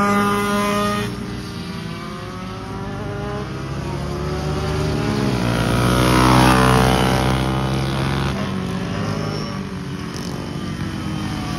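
Go-kart engines whine, one growing louder and then dropping in pitch as it passes close.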